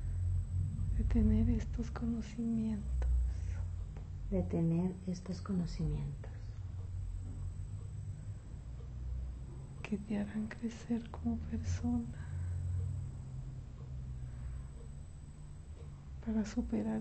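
A middle-aged woman speaks slowly in short, halting bursts, close by.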